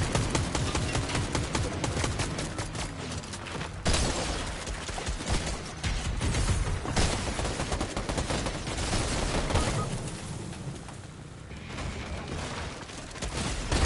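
A motorbike engine revs and roars.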